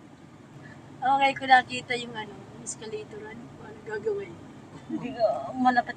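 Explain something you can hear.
Women laugh and chatter with animation close by.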